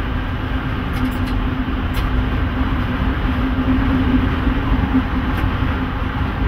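Wheels clatter over rail joints.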